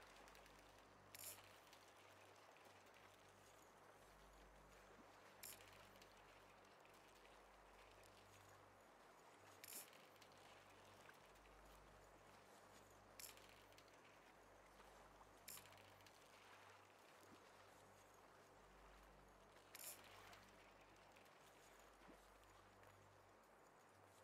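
A fishing reel winds in line.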